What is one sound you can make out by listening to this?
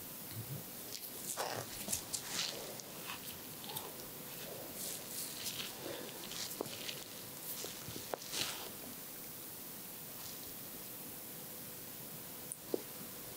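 Metal nail clippers click and snip at fingernails, close up.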